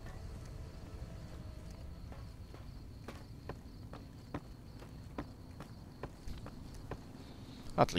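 Footsteps thud steadily on wooden railway sleepers.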